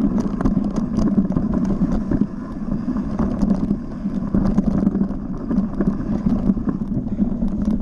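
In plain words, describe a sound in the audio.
A bike rattles and clatters over roots and stones.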